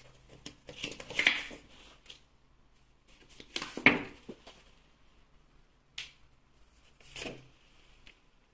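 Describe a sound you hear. Paper rustles as a hand handles it.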